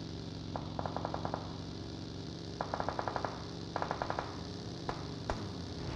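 A buggy engine drones steadily.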